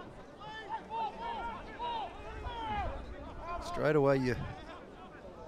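Young men shout to each other outdoors on a field.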